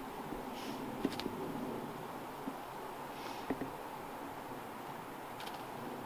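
Small clicks and knocks come as a man handles a cord up close.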